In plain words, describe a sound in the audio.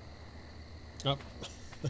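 A man speaks briefly and casually into a nearby microphone.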